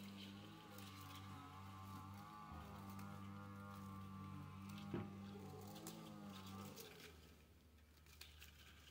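Thin copper wires rustle and scrape against a metal bucket.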